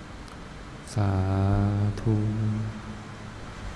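An elderly man chants in a deep, steady voice through a microphone.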